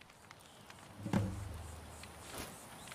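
A magic spell bursts with a deep rumbling whoosh.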